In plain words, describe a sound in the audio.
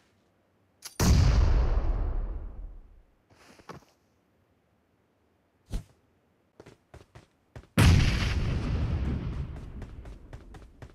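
A grenade explodes with a loud, rumbling boom that fades away.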